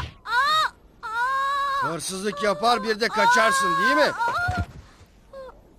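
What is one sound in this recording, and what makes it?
A man speaks in a low, stern voice.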